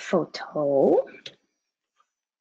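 A young woman speaks briefly through a computer microphone.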